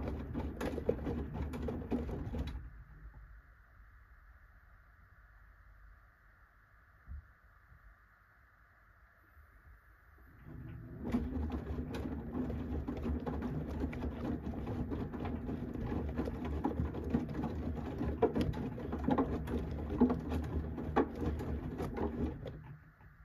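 Wet laundry tumbles and sloshes inside a washing machine drum.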